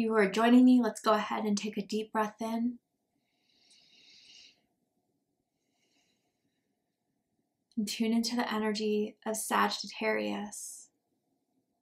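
A woman speaks softly and calmly, close by.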